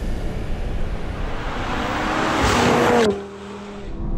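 A car rushes past close by with a loud whoosh.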